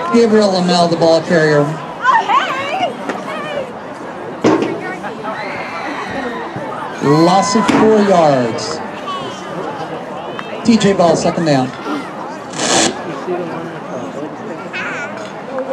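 A crowd of spectators shouts and cheers outdoors.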